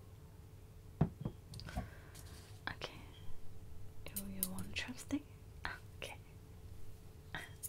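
Fingers tap and scratch on a microphone close up.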